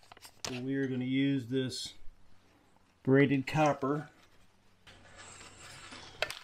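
A braided metal strap rustles and scrapes against metal.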